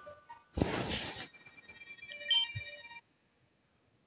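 Electronic video game beeps and chimes play, then stop.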